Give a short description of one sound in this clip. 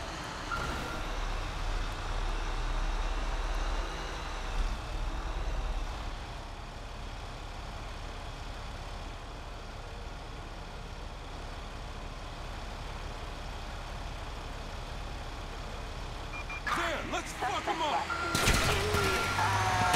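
A diesel fire truck engine rumbles.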